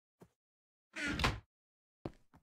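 A wooden chest thumps shut.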